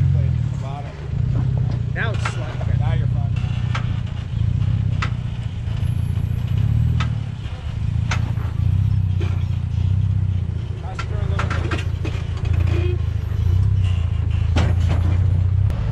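Tyres crunch and scrape over rocks and gravel.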